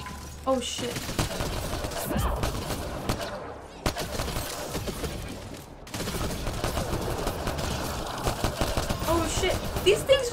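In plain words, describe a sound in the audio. Gunshots fire in rapid bursts with sharp cracks.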